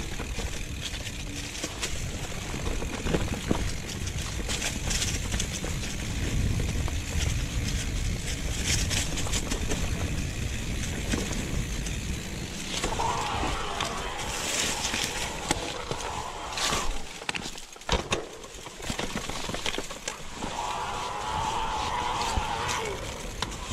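A bicycle's chain and frame clatter over bumps.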